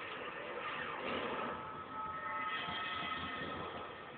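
Music plays from a television's speakers.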